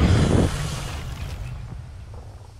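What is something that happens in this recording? A magical icy blast whooshes and crackles loudly.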